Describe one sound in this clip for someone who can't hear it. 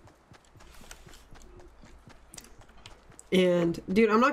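Footsteps patter quickly on soft ground.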